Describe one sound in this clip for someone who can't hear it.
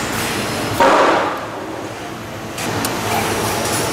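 A wrench turns a bolt with light metallic clicks.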